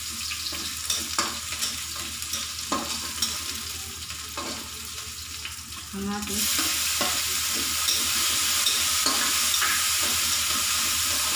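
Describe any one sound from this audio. A metal spatula scrapes and clanks against a pan.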